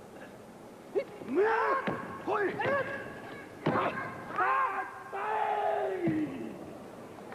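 Men shout sharply as they strike.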